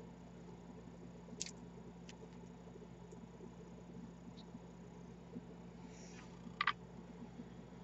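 Small beads click softly against each other.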